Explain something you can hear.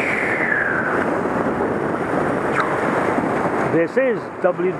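Waves wash and splash over rocks close by.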